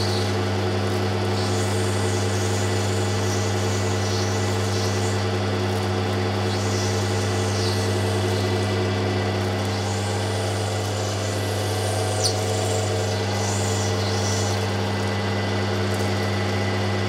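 A grinding wheel motor hums steadily.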